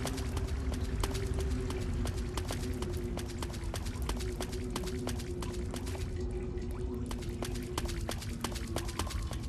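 Footsteps crunch quickly through leaves and undergrowth.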